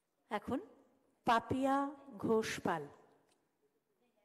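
A woman speaks into a microphone over loudspeakers in a large hall.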